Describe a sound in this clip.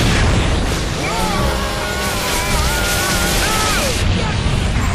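A chainsaw revs and grinds loudly.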